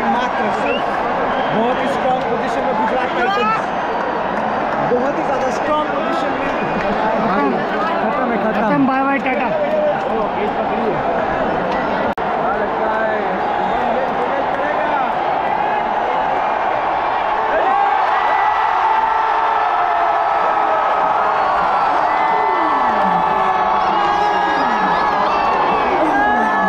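A large stadium crowd roars and cheers loudly.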